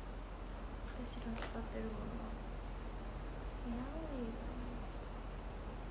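A young woman speaks a few short words softly, close by.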